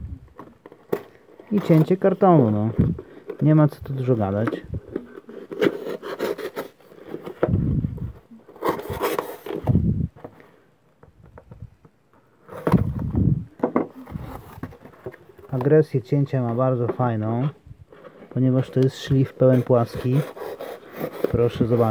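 A knife slices through packing tape on a cardboard box.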